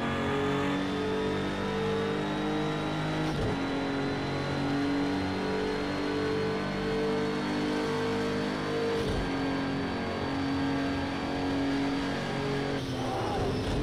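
A racing car engine roars at high revs, climbing steadily in pitch.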